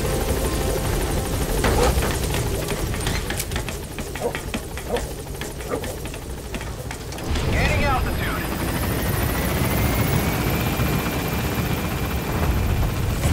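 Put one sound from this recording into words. A helicopter engine rumbles and whirs steadily nearby.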